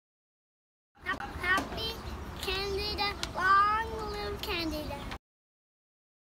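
A young boy speaks with excitement close by.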